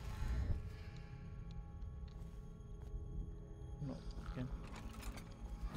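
A magical whoosh swells and fades.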